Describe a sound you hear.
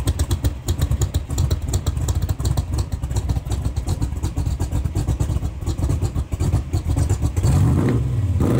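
A car engine idles with a deep, loud burbling rumble.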